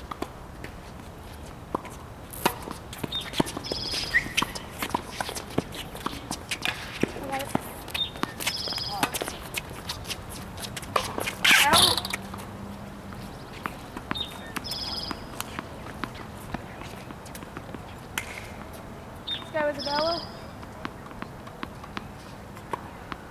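Tennis balls are struck by rackets with sharp pops outdoors.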